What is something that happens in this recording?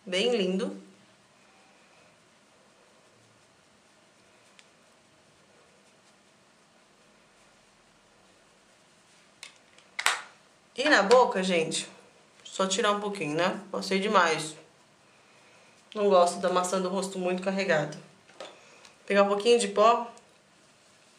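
A young woman talks calmly close to a microphone, in short bursts.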